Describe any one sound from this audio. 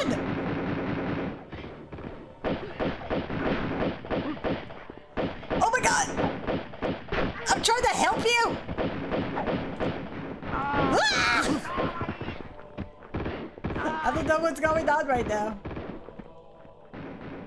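A young woman talks and laughs with animation close to a microphone.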